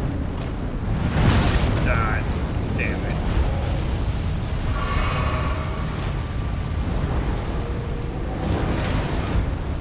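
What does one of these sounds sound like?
A giant heavy weapon swings and thuds into the ground.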